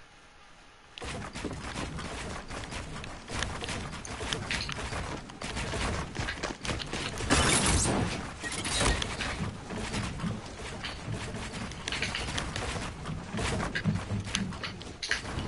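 Building pieces clatter and snap into place in a video game, in quick bursts.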